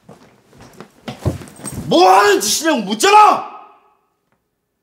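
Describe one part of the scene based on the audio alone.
A man speaks loudly and angrily nearby.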